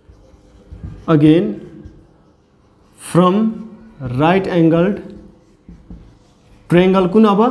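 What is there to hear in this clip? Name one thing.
A man speaks calmly and clearly nearby, in short phrases.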